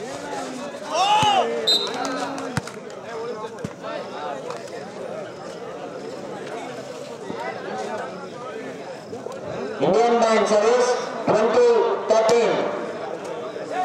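Young men shout loudly nearby.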